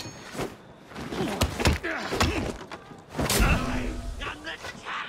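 Blows thud and smack in a short fight.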